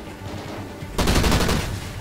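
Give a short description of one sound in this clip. An explosion bursts with a loud crackling blast.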